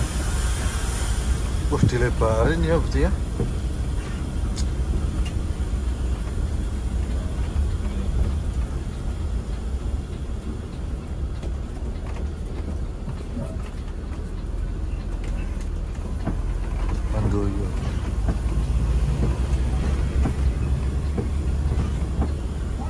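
Rain patters on the windshield.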